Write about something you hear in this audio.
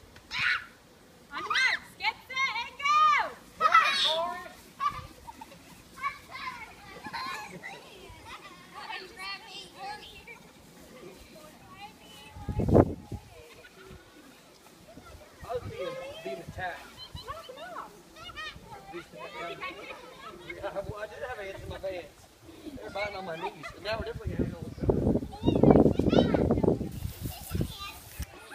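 Children shout and cheer excitedly outdoors.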